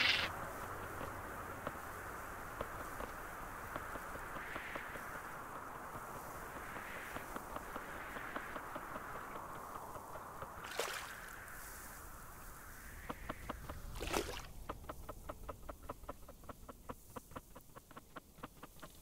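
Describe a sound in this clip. Small footsteps splash through shallow water.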